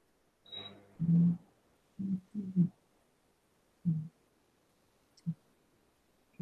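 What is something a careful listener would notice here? An elderly woman murmurs briefly over an online call.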